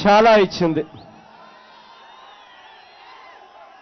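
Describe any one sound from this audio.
A large crowd murmurs.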